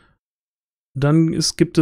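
A man speaks casually over an online call.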